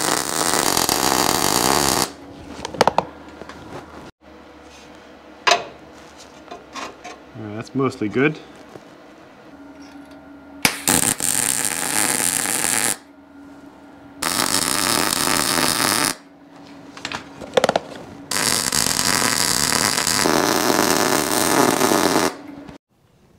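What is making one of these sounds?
An arc welder crackles and hisses in steady bursts.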